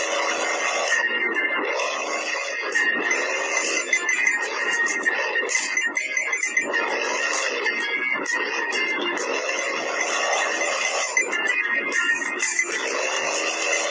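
Coins chime quickly as they are collected.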